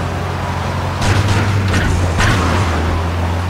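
A car crashes into a truck with loud metallic bangs.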